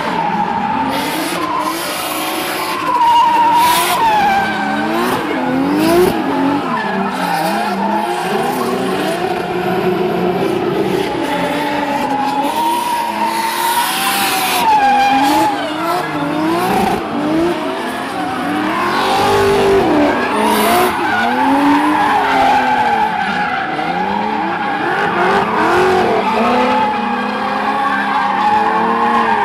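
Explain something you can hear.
Drift car engines rev hard.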